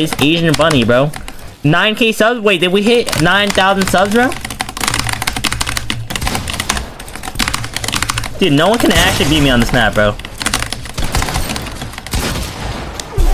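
Wooden building sounds clatter rapidly in a video game.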